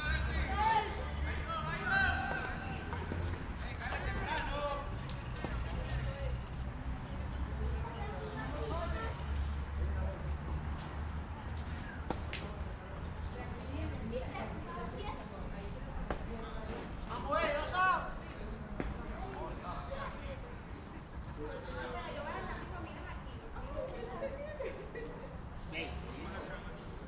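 Young men call out to each other from a distance outdoors.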